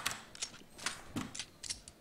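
A pistol clicks and clacks as it is reloaded.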